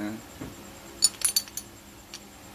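Metal parts clink and rattle as a hand turns a pulley block.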